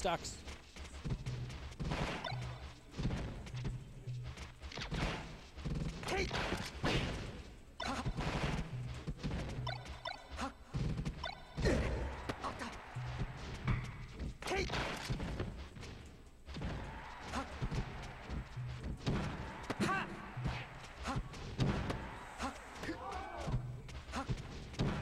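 Punches and kicks from a fighting game land with sharp smacks and blasts.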